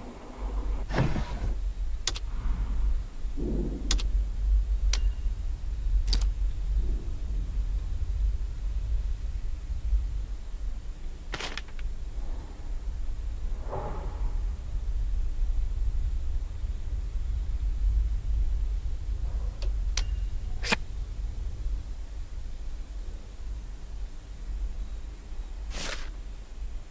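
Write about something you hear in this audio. Short soft clicks of a game menu sound now and then.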